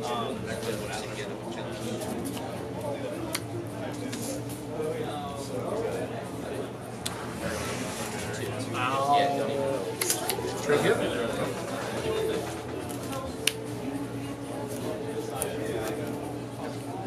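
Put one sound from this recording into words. Cards are shuffled between fingers.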